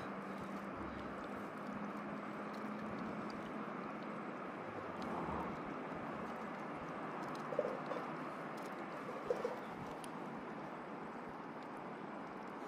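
Water hisses and rushes steadily, heard from underwater.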